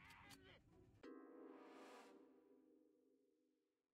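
Game music plays in steady tones after the fight ends.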